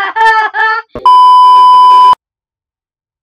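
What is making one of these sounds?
A steady, loud, high-pitched test tone beeps briefly.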